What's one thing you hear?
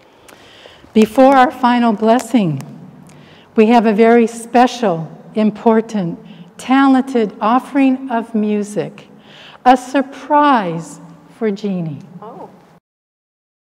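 An older woman sings a chant through a microphone in an echoing hall.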